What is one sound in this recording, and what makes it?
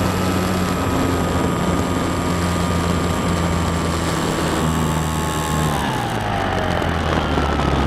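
Wind rushes past in flight.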